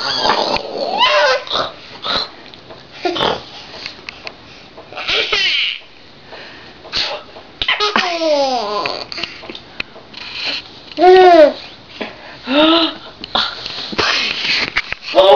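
A young woman talks and coos playfully to a baby close by.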